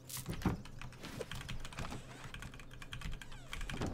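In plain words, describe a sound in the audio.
A wooden door swings open with a creak.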